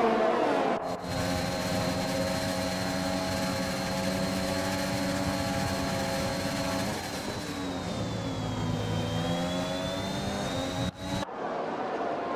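A racing car engine drones steadily close up, shifting pitch through a corner.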